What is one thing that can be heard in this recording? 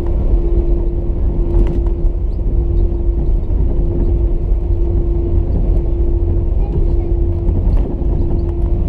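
A jet airliner's engines roar steadily with a low rumble and a droning hum inside the cabin as the plane taxis.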